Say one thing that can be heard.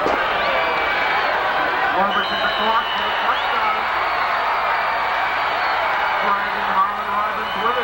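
Young male football players shout outdoors on a field.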